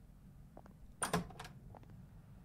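A door clicks and swings open.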